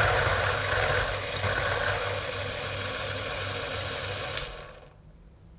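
A coffee grinder whirs loudly.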